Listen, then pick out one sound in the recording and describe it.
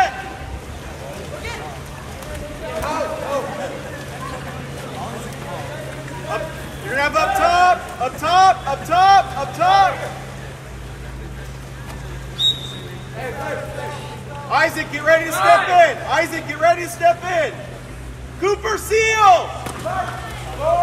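Swimmers splash and churn water.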